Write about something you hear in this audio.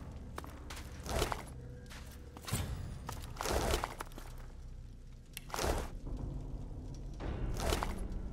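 Magic blasts whoosh in short bursts.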